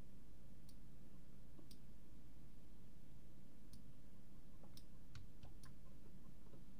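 A pickaxe chips at stone with short, sharp clicks.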